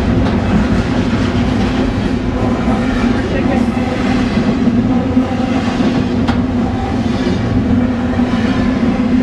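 A train rushes past close by with a loud, steady roar and rumble.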